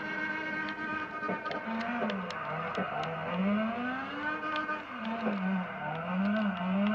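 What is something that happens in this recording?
Tyres screech on tarmac.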